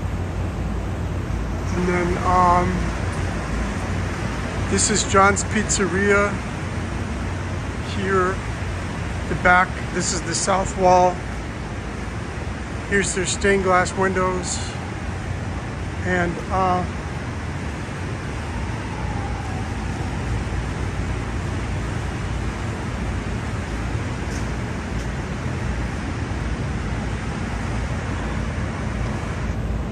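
A steady low hum of ventilation machinery drones outdoors.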